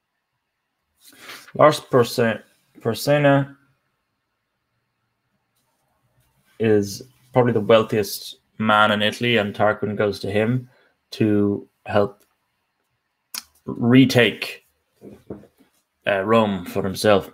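A young man speaks calmly into a microphone, as if giving a talk online, with pauses between phrases.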